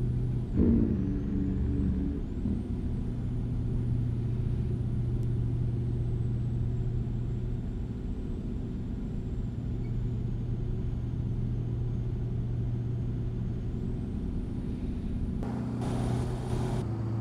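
A truck engine drones steadily at a low pitch while driving.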